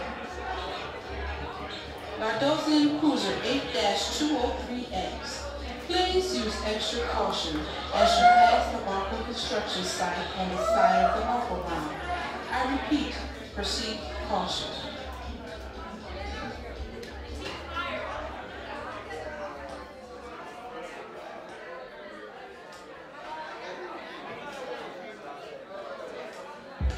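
People chat close by in an echoing room.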